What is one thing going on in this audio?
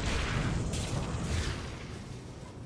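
Fiery blasts crackle and roar.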